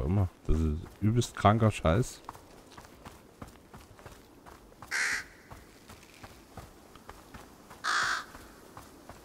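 A child's footsteps crunch softly through grass.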